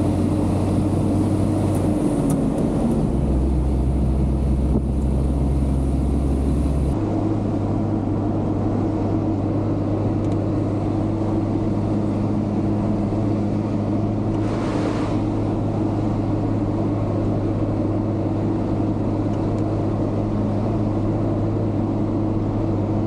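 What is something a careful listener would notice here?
Tyres roll on a paved road with a steady rumble.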